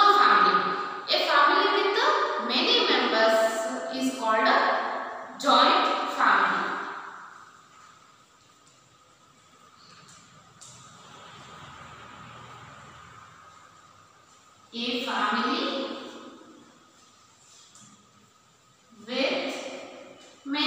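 A woman speaks clearly and steadily, close by, as if teaching.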